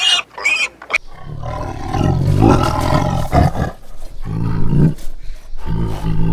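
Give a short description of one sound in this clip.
A tiger roars deeply.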